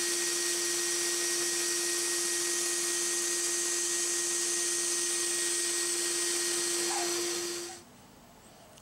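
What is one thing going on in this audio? A band saw whines steadily as it cuts through wood.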